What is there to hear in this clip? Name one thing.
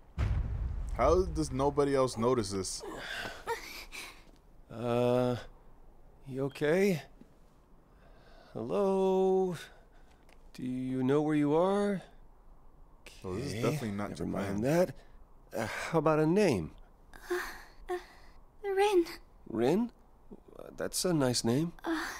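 A young man speaks in a puzzled, questioning tone, close by.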